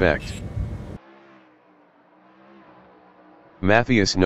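Race car engines drone steadily.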